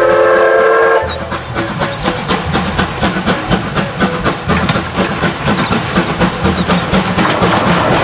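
A steam locomotive chugs steadily along the track.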